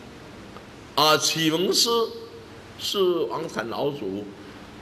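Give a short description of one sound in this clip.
An elderly man speaks calmly and expressively into a microphone.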